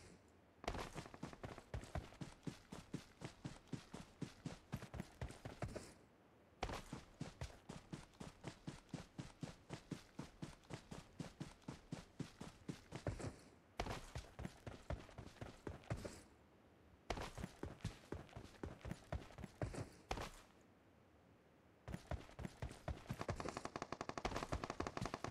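Footsteps run quickly over grass and gravel.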